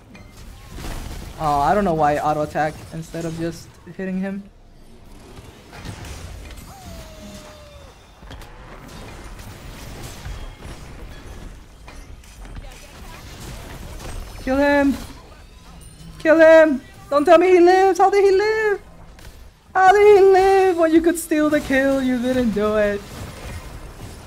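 Magic blasts crackle and weapons strike in a fight.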